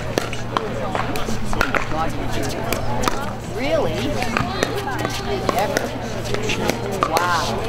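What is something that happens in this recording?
Sneakers squeak and shuffle on the hard court.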